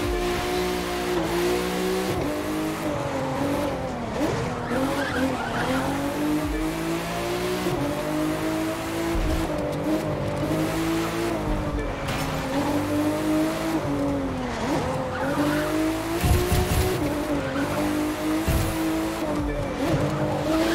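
A race car engine roars, its pitch rising and falling as the gears shift.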